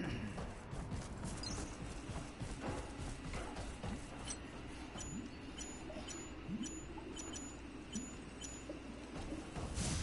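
Metal footsteps clank as an armoured figure runs.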